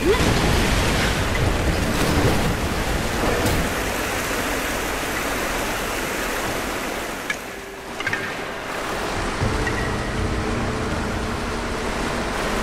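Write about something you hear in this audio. Water splashes and sloshes as a swimmer strokes through it.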